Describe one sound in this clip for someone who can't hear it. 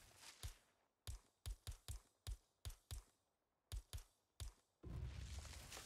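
Short clicks tick in quick succession as items are flicked through.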